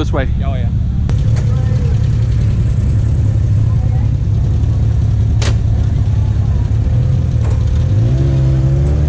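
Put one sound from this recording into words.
An off-road vehicle's engine idles nearby and revs up.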